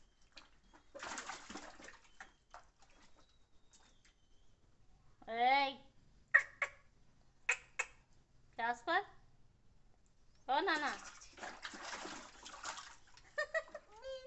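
Water splashes and sloshes in a small tub.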